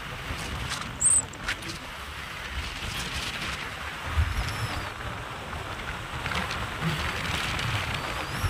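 Wind rushes steadily past a moving vehicle.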